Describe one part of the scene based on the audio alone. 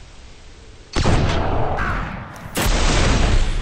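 A rifle fires in sharp shots.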